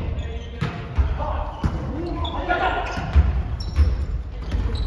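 Hands strike a volleyball in an echoing gym.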